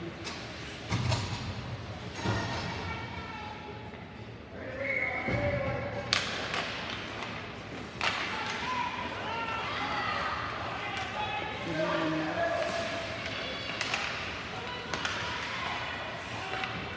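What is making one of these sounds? Hockey sticks clack against a puck with echoing knocks.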